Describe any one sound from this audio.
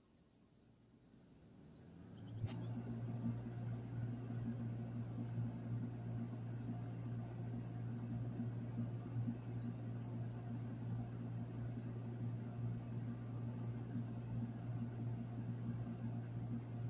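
An outdoor unit starts up and hums and whirs steadily.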